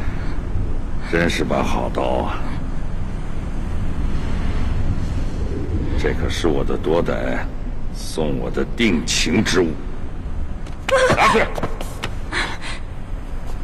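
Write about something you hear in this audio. A man speaks slowly and menacingly, close by.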